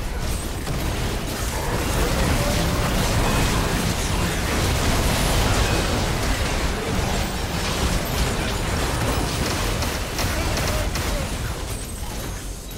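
Video game spell blasts and impacts crash rapidly in a chaotic battle.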